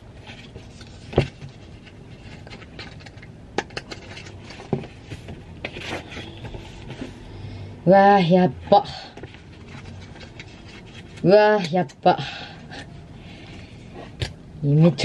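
Magazine pages rustle and flip close by.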